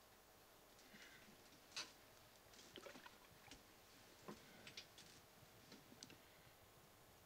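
Bedclothes rustle softly as someone sits down on a bed.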